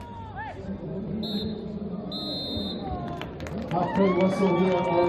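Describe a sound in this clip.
Players shout to each other across the pitch.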